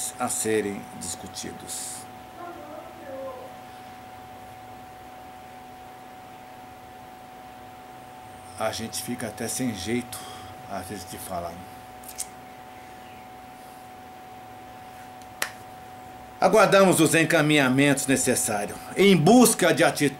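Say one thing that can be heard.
An older man speaks close to the microphone in bursts, with pauses.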